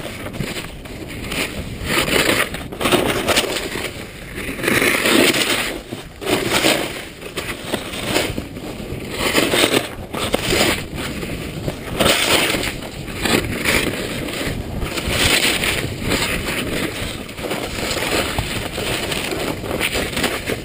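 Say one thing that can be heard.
Snowboards scrape and hiss over packed snow in swelling bursts.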